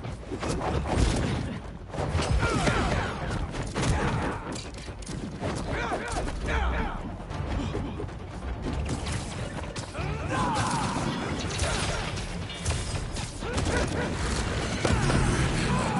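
Blows and punches thud in a game fight.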